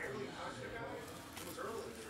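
Cards shuffle and slap as hands riffle through a stack.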